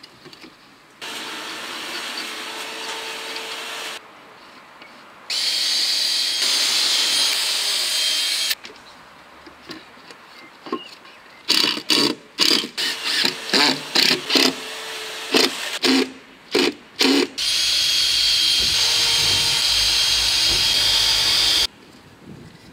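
An electric tool whirs steadily in several long bursts.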